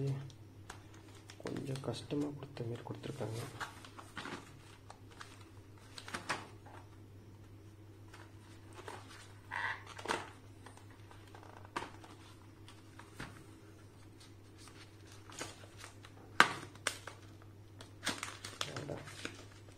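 Cardboard packaging rustles and clicks as hands handle it.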